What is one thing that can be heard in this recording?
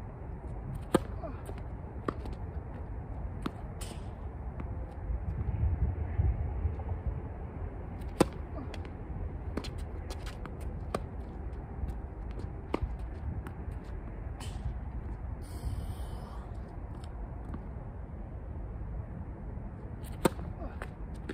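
A tennis racket hits a ball with sharp pops outdoors.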